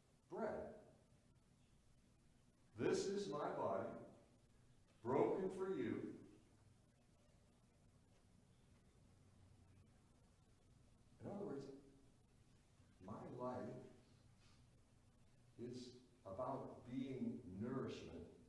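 A man speaks calmly in bursts with pauses, heard through a microphone in a large echoing hall.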